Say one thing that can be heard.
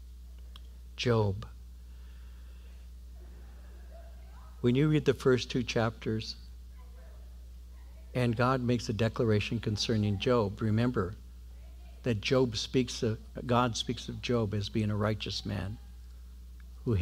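An older man speaks calmly into a microphone, pausing between phrases.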